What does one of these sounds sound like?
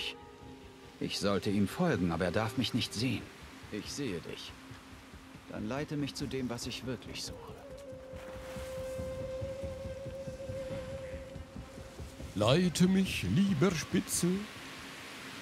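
A man talks close to a microphone in a calm voice.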